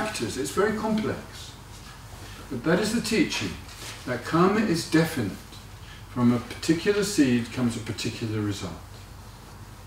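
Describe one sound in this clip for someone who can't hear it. An older man speaks calmly and thoughtfully close to a microphone.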